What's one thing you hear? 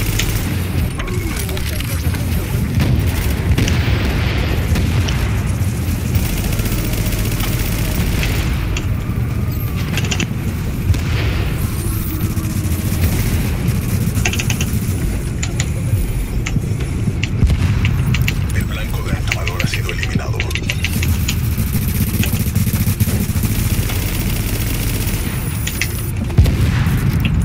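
Explosions boom with fiery bursts.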